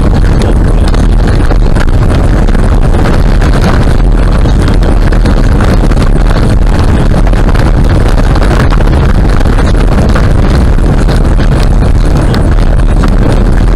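Tyres rumble and crunch steadily on a gravel road.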